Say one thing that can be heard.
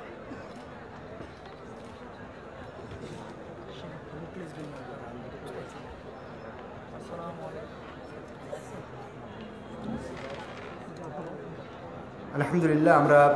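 Several men talk quietly nearby.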